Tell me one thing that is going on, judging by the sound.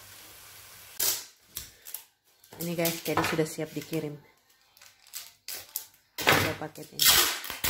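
Plastic wrap crinkles and rustles as hands handle a package.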